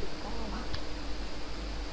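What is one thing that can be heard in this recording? A young woman talks through a microphone.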